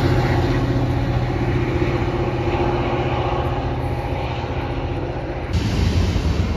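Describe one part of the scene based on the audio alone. A diesel locomotive engine rumbles steadily in the distance.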